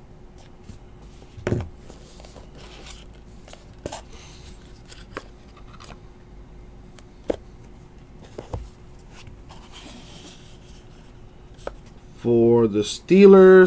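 Hands open a small cardboard box with soft taps and scrapes.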